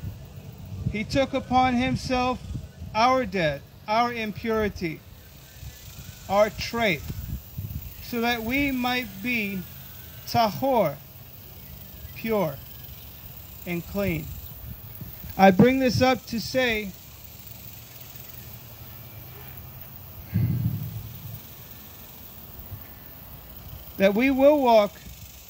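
A man speaks calmly into a microphone, outdoors, in short phrases with pauses.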